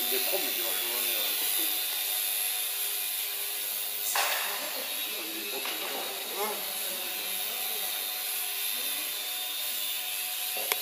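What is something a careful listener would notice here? A small model plane's electric motor whirs steadily in a large echoing hall.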